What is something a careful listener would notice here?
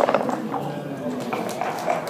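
Dice rattle in a cup.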